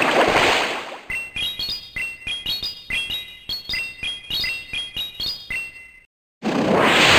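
Quick game chimes ring out in a rising pattern.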